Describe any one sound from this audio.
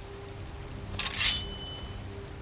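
A sword is drawn from its sheath with a sharp metallic ring.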